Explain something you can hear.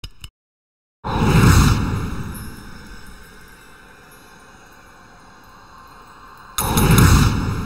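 A shimmering magical chime swells up and slowly fades.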